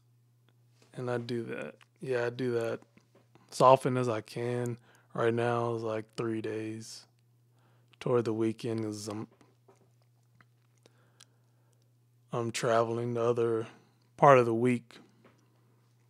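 A man speaks calmly and closely into a microphone, in short bursts.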